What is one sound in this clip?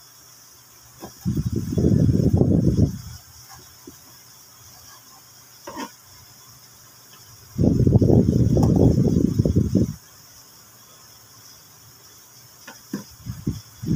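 A knife knocks against a cutting board.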